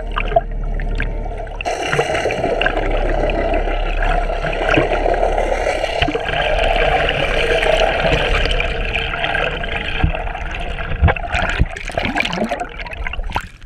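Water rushes and hisses in a steady, muffled underwater wash.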